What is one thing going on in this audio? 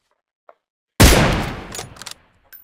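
A rifle shot bangs loudly.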